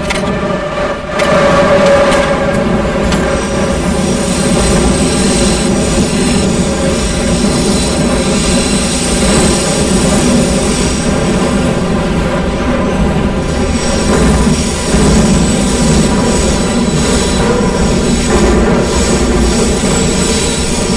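A subway train rumbles steadily through a tunnel, its motor humming.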